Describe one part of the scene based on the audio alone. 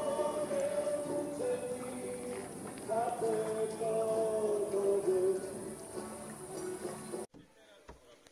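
A group of men sings along.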